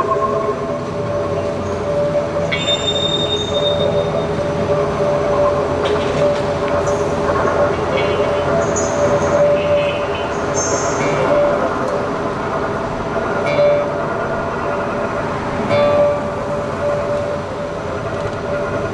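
A second guitar strums and plucks along.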